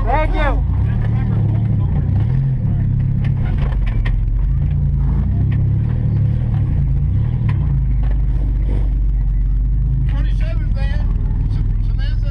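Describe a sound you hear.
Tyres churn through mud and rattle over bumps.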